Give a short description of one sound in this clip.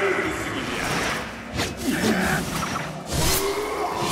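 Metal blades clash in a brief sword fight.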